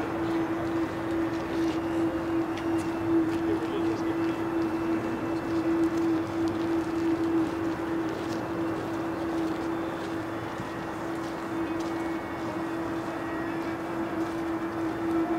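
A cello holds a long, steady bowed note.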